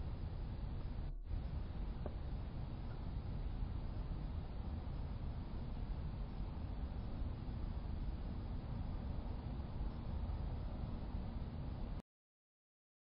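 Waves break and roll in steadily outdoors.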